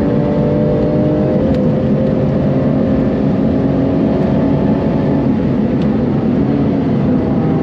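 A sports car engine roars loudly at high revs, shifting gears.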